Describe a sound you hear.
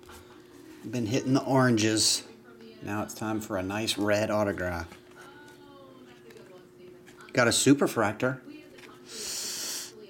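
Trading cards flick and slide against each other as they are shuffled through.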